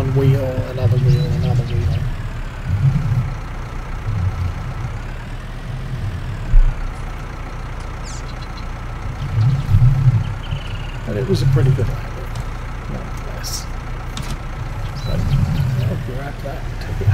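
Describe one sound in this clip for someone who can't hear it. A diesel tractor engine hums.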